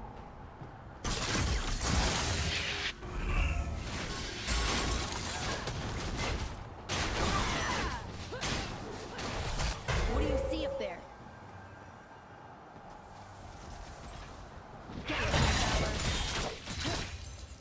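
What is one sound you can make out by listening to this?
Magic spells whoosh and crackle in a video game fight.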